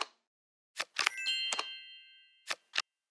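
A bright chime rings out briefly and fades.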